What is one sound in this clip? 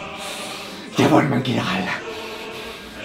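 A man lets out a loud, strained yell.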